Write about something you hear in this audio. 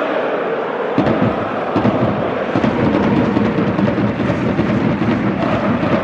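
A stadium crowd claps and drums in rhythm.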